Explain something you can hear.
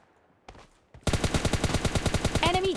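A rifle fires in a rapid burst of loud shots.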